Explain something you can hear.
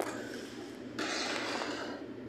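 A metal scraper scrapes across a cold metal plate.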